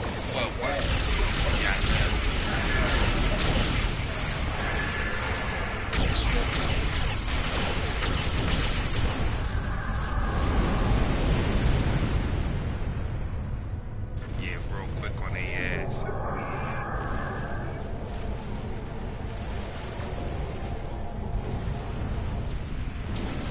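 Spaceship engines rumble steadily in a game.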